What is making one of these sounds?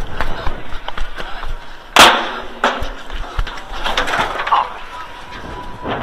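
Footsteps clatter on metal bleachers.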